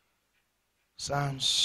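A second man reads aloud into a microphone.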